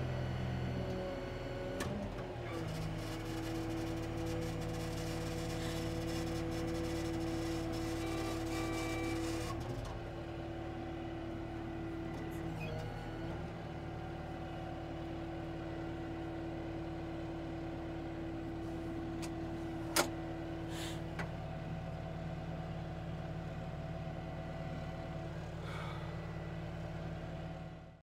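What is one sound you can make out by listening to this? A diesel engine idles with a steady low rumble nearby.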